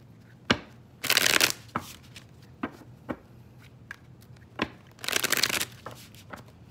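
Playing cards riffle quickly in a shuffle.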